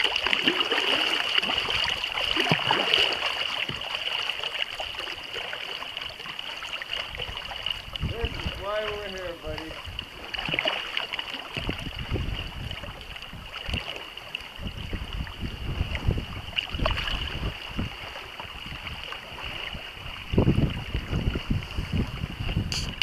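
Small waves lap and splash against the boat in a light wind.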